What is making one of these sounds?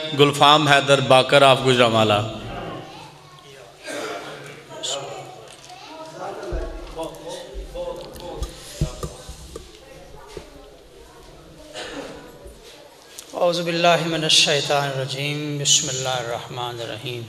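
A man speaks loudly and with emotion into a microphone, heard through loudspeakers in an echoing hall.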